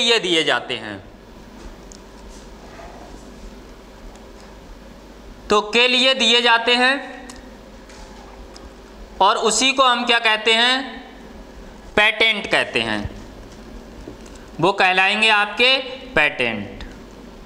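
A man speaks in short bursts, explaining calmly, close by.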